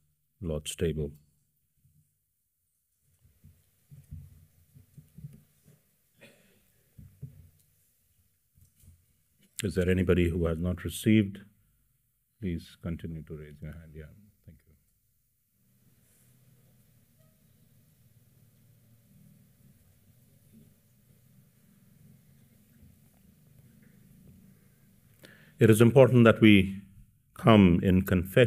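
A middle-aged man speaks calmly into a microphone in a large room, with pauses between phrases.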